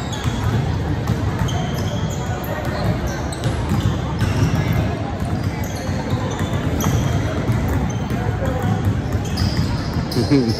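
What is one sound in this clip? Basketballs bounce and thud on a wooden floor in a large echoing gym.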